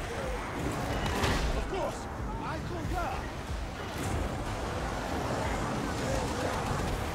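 Flamethrowers roar in bursts.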